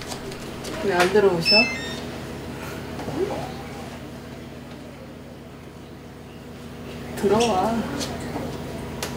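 A young woman calls out from across a room.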